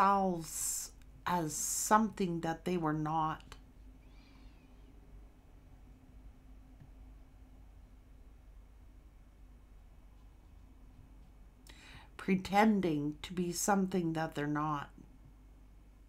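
A woman speaks calmly and close to a microphone, with long pauses.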